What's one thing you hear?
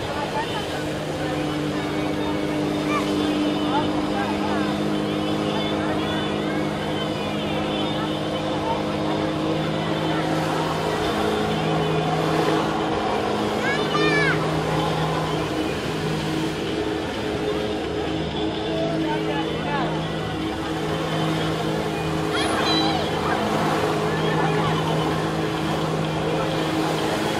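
A personal watercraft engine drones under load.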